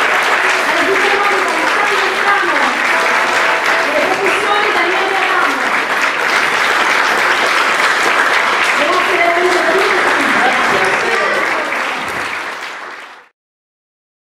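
An audience claps and cheers loudly in an echoing room.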